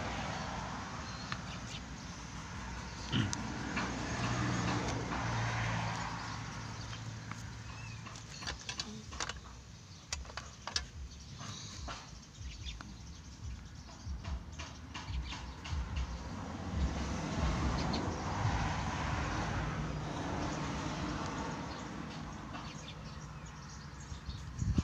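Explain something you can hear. A pencil scratches and rubs on paper.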